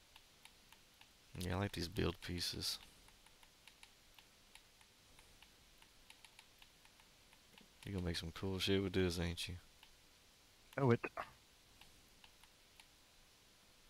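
Soft interface clicks tick as a menu is scrolled.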